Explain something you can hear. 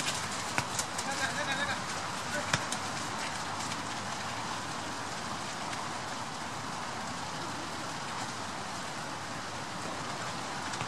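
Rain hisses steadily outdoors.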